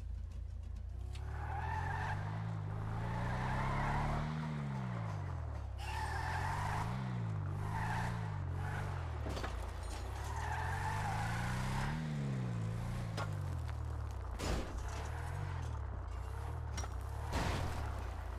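A heavy truck engine roars and revs up and down.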